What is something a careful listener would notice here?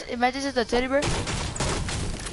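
A burst of fire roars close by.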